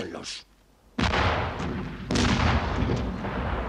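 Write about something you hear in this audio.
Field guns fire with loud booming blasts.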